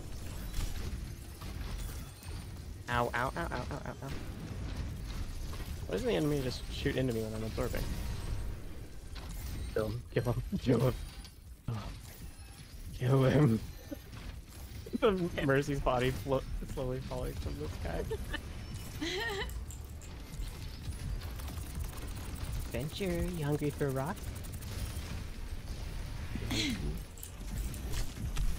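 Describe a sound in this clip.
Gunfire and blasts crackle from a video game.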